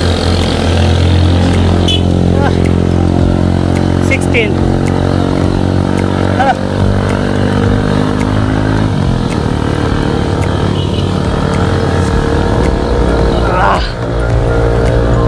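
A motorcycle engine hums steadily close by as it rides along.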